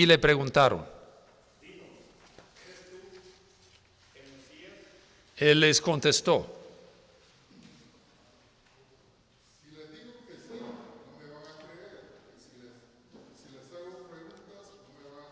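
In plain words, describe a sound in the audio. An elderly man speaks quietly and calmly through a microphone.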